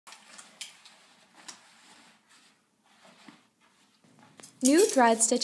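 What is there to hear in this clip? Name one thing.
Hangers click against a metal rail.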